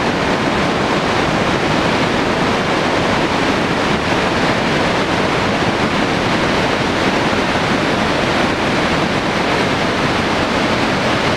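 A fast, swollen river rushes and roars steadily.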